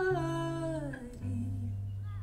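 A young woman sings through a microphone and holds a final note.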